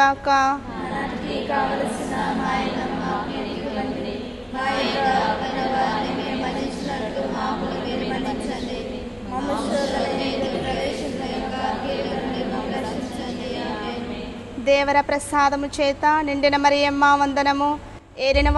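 A group of women sing a slow hymn together, heard through a microphone.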